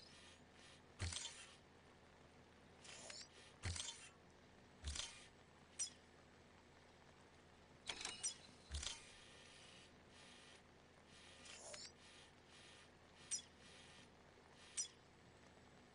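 Short interface clicks and beeps sound one after another.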